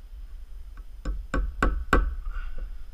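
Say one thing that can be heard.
A hammer strikes a nail into wood in quick, ringing blows.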